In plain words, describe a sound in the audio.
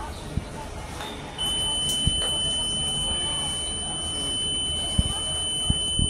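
Glass lift doors slide and rumble as they move.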